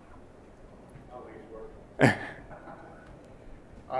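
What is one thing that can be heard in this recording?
A man speaks quietly in a large room, heard from a distance.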